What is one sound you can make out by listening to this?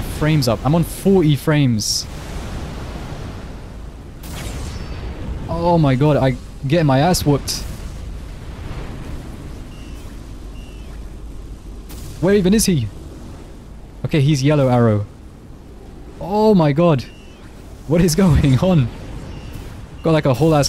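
Energy blasts burst and crackle in bursts.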